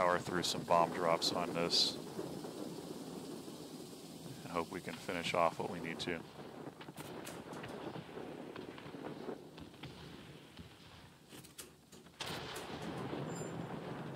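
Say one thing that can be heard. Bombs explode with dull booms far below.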